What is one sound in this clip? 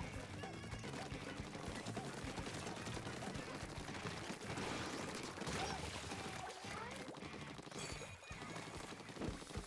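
Paint guns splat and spray in quick bursts.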